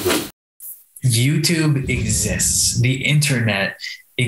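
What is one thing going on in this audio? A man speaks with animation into a microphone, heard as if over an online call.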